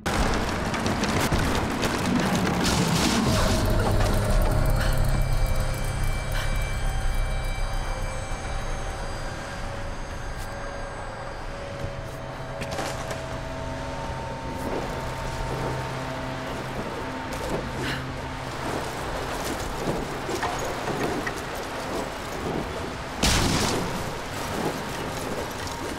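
Wooden planks crash and clatter as they break apart.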